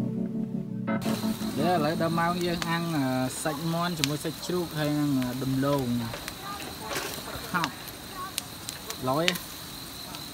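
Food sizzles on a hot grill.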